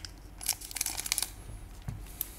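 Scissors snip through a foil wrapper.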